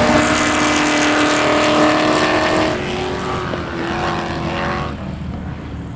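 Race car engines roar loudly nearby, revving high as the cars speed past.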